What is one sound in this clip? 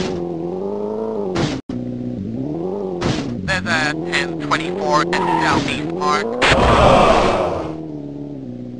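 A car engine revs and whines, rising and falling in pitch.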